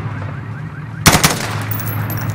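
A rifle fires a short burst close by.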